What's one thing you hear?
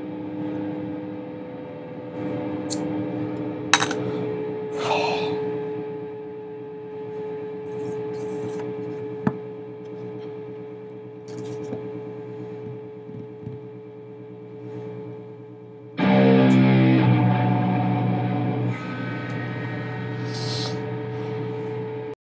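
An electric guitar plays ringing notes.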